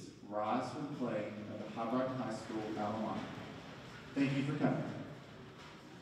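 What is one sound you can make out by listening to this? Adults talk at a distance in a large echoing hall.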